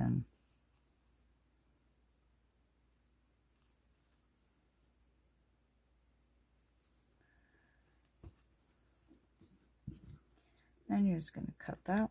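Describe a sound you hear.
Yarn rustles softly as hands handle crocheted fabric.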